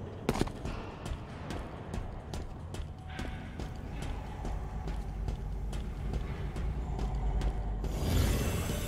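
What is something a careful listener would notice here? Heavy armoured footsteps clank steadily on a metal floor.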